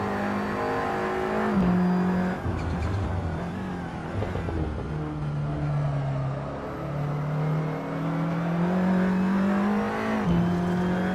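A racing car engine roars and revs, its pitch jumping as gears shift.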